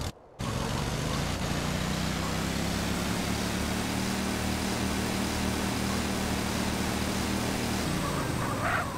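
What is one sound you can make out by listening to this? A small kart engine hums steadily.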